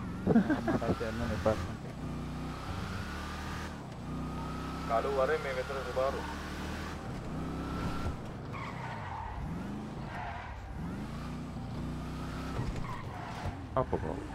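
Tyres screech as a car drifts around corners.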